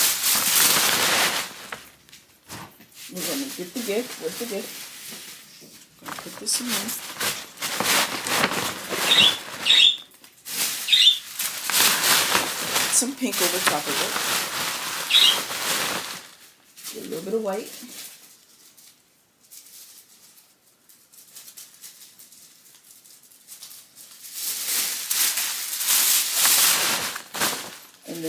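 A paper gift bag rustles and crinkles as it is handled up close.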